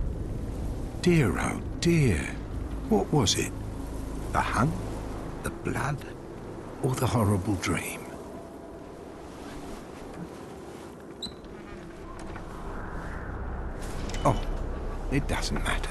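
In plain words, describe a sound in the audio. An elderly man speaks slowly in a raspy, mocking voice.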